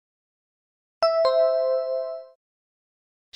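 A bright chime rings once and fades.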